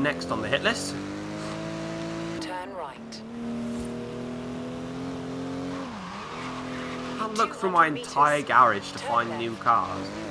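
A car engine hums steadily, dropping and climbing in pitch as the car speeds up.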